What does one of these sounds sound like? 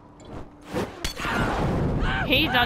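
A bottle shatters and bursts into flames.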